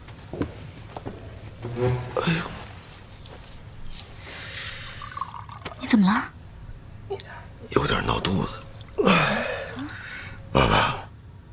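A man speaks in a pained voice, close by.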